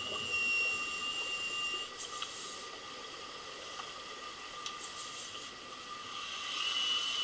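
Air bubbles gurgle and hiss from underwater breathing gear.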